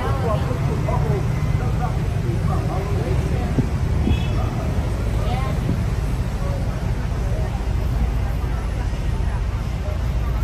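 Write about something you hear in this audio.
Street traffic hums and rolls by below.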